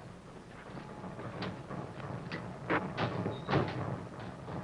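A metal rear door on an armoured truck clanks open.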